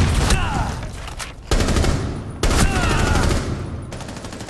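Rapid gunshots fire in short, loud bursts.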